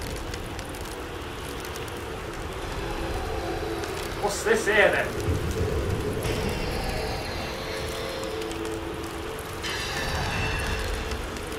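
Wind roars steadily in a dust storm.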